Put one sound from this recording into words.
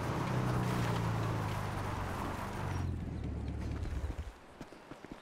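A motorbike engine runs and slows.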